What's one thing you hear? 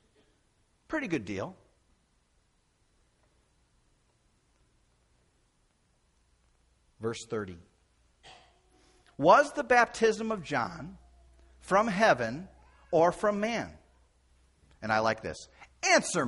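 An older man speaks calmly and with pauses into a microphone, heard through a loudspeaker in a large room.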